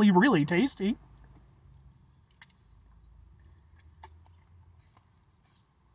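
A man gulps down a drink.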